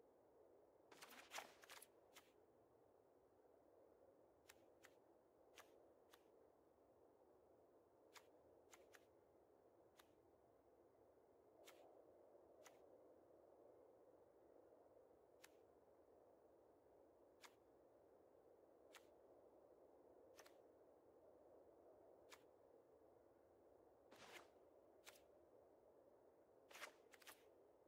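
Short game interface clicks sound as cards are picked.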